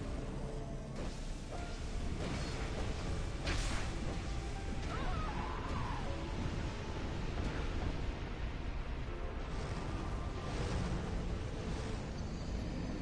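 Heavy bursts of fire whoosh and rumble.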